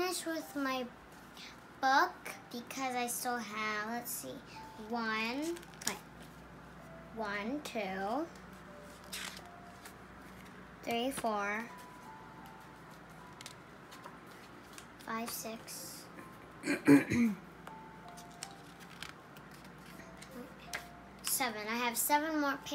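Paper pages rustle and flap as a book is handled.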